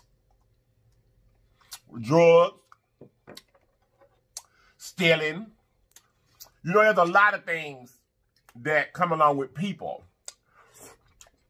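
A man chews food noisily close to a microphone.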